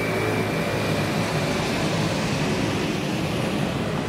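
A motor scooter rides up along the street and passes by.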